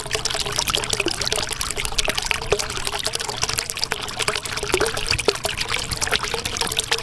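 Air bubbles gurgle and pop steadily underwater.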